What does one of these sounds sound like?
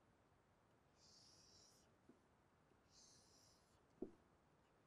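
A stylus scratches in short strokes across a tablet.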